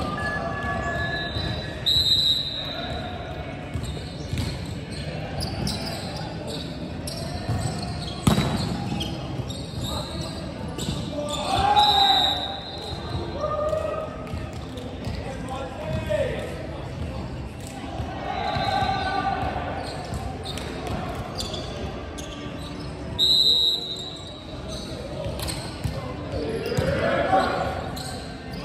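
Several young people talk and shout at a distance in a large echoing hall.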